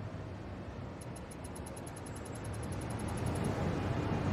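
Soft, high ticking clicks repeat quickly and evenly.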